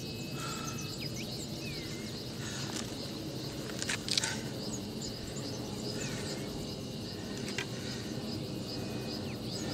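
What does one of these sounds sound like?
A walking stick taps on stone.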